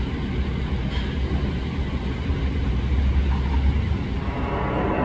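A loader's engine idles with a low rumble nearby.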